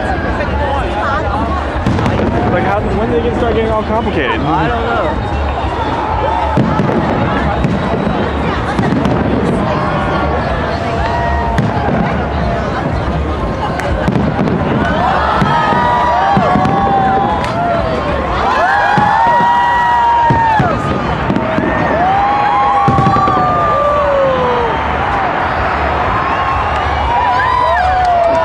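Fireworks burst with loud booms and crackles overhead.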